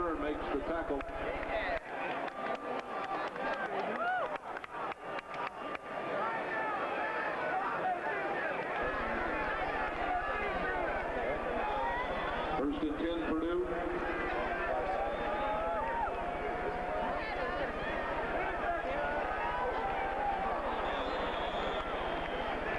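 A large stadium crowd cheers and chatters throughout.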